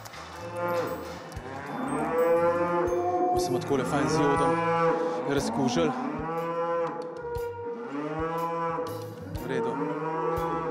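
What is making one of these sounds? A calf bawls loudly, again and again.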